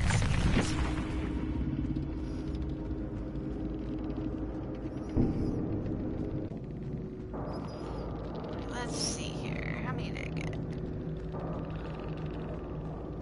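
Eerie game music drones steadily in the background.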